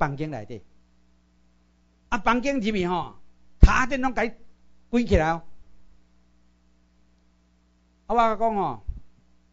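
A middle-aged man speaks with animation through a microphone, in short bursts with pauses.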